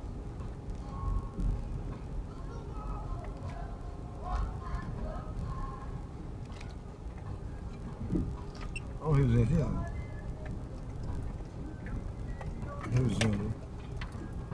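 A vehicle body rattles and bumps over rough ground.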